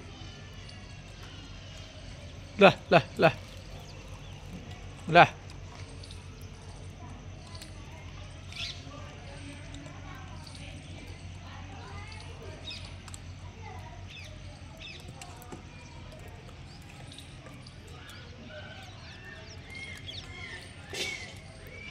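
A monkey cracks and chews peanuts close by.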